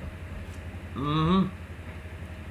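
A man lets out a loud, drawn-out exclamation close by.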